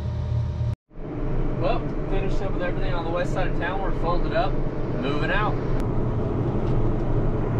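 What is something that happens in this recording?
A large tractor engine hums, heard from inside the cab.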